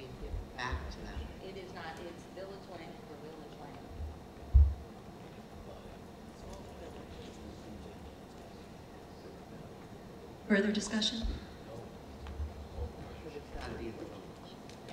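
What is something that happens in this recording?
An elderly man speaks calmly into a microphone, heard over a loudspeaker system.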